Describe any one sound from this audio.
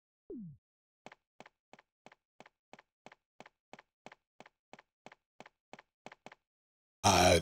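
Footsteps tap quickly and evenly on a hard stone floor.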